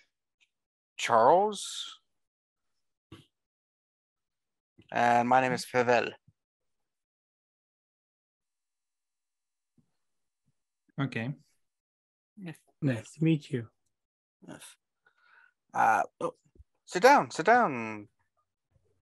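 A man speaks over an online call, in short bursts with pauses.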